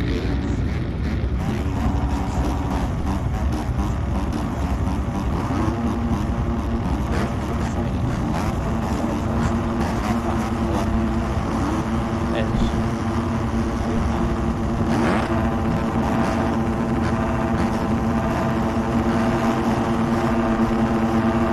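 Several dirt bike engines idle and rev with a loud buzzing drone.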